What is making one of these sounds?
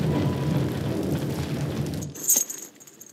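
A fire roars loudly.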